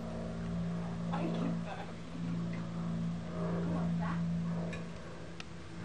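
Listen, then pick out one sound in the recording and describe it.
A young woman talks and laughs softly close by.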